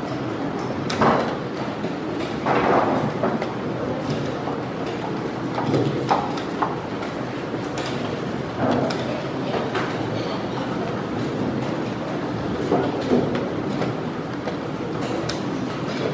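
A chess clock button clicks.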